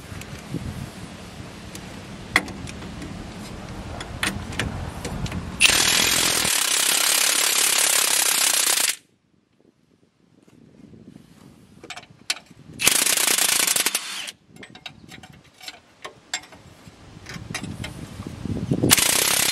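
Metal tools clink and knock against car parts.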